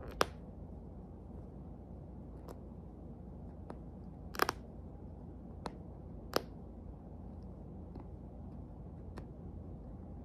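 A cockatoo nibbles at a toy, its beak clicking.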